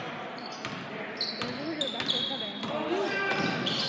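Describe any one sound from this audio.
A basketball bounces on a hard floor in an echoing hall.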